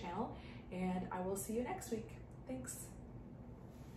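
A young woman speaks warmly and calmly, close by.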